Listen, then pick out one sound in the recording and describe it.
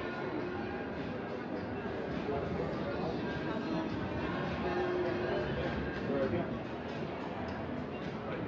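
Slot machines chime and jingle.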